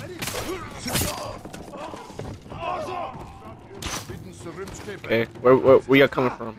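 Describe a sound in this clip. Swords clash and strike sharply.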